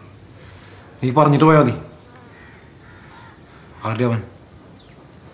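A man speaks sharply and loudly nearby in short bursts.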